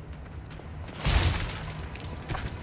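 A wooden crate smashes apart with a loud crack.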